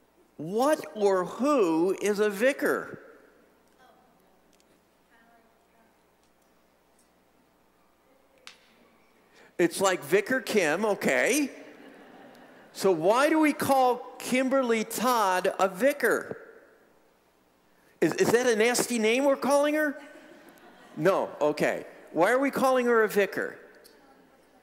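An older man speaks calmly and clearly in an echoing hall, with pauses between phrases.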